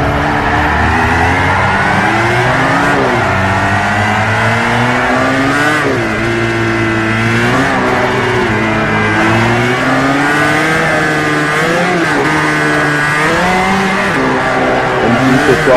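Tyres screech on asphalt as a car slides sideways.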